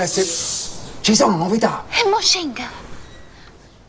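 A young woman calls out.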